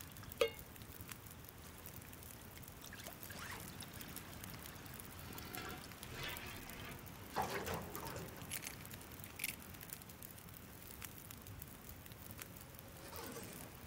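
A campfire crackles and pops softly.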